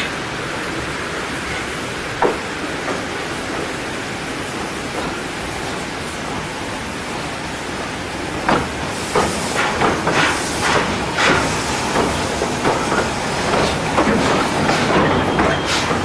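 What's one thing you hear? A steam locomotive hisses steadily as steam escapes.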